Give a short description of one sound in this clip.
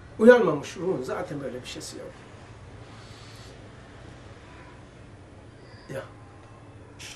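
An elderly man speaks calmly into a nearby microphone.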